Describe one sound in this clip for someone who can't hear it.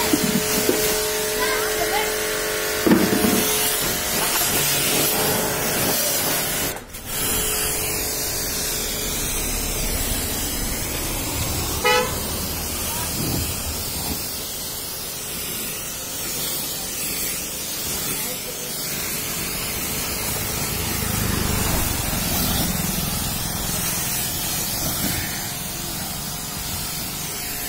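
A pressure washer sprays water with a steady, loud hiss.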